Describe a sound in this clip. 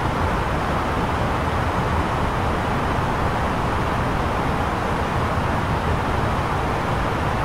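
A steady roar of airflow and engines fills the cockpit of an Airbus A320neo in flight.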